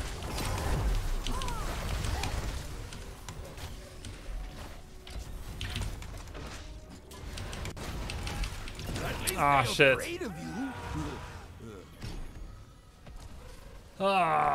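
Game battle sounds clash and crackle.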